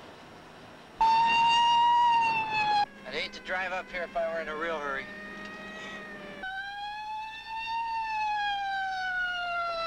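A siren wails loudly, rising and falling.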